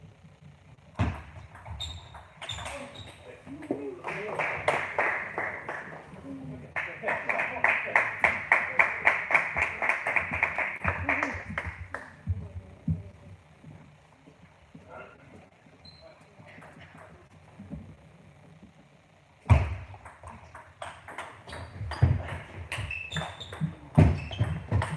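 A table tennis ball clicks quickly back and forth off paddles and the table in a large echoing hall.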